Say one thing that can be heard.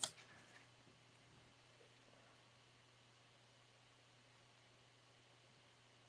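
A pen scratches faintly on paper.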